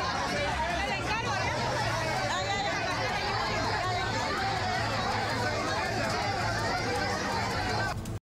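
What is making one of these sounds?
A dense crowd of men and women shouts and argues loudly at close range.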